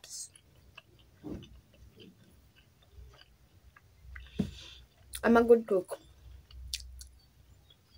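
A young woman chews food.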